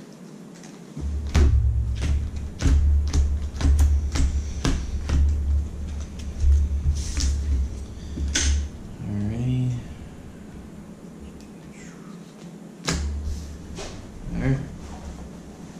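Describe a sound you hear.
Playing cards are snapped and laid down on a table.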